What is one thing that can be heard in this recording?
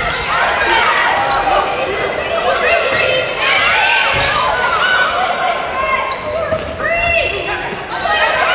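Sneakers squeak sharply on a hard court floor, again and again.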